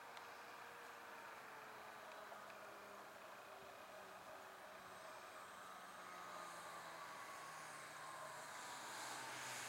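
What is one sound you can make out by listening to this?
A small propeller plane drones overhead, growing louder as it comes in low.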